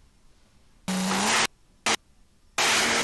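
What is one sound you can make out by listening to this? A race car engine roars loudly as it launches.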